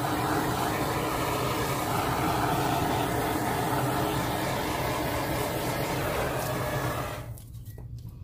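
A small gas torch roars steadily.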